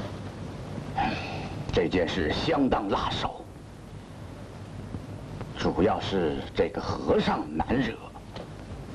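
A middle-aged man speaks gravely.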